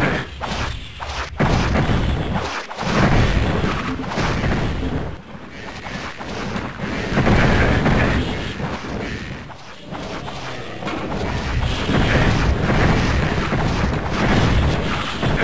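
A crossbow fires magic bolts with sharp whooshes.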